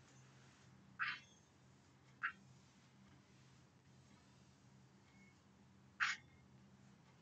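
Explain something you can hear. Chalk scrapes and taps on a blackboard in short bursts.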